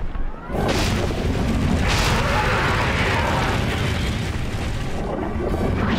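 A blast of fire roars.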